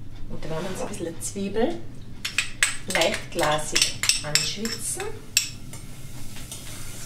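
A woman speaks calmly and close by, as if explaining.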